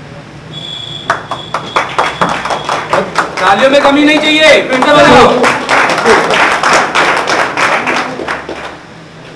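A small group of men clap their hands.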